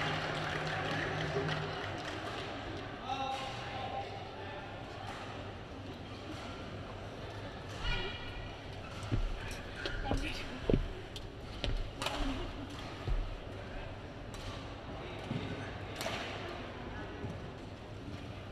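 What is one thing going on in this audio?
A large indoor crowd murmurs in an echoing arena.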